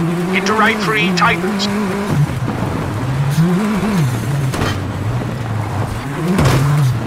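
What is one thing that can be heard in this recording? A rally car engine revs and drops as the car races along a gravel road.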